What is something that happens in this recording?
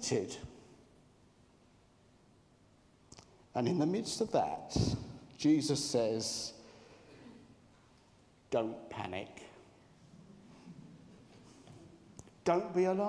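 A middle-aged man speaks into a microphone in short bursts, with pauses.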